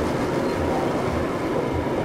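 Sparks crackle and fizz.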